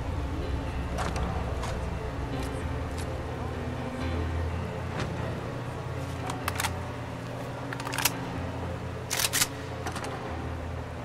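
Short sharp clicks sound as items are picked up.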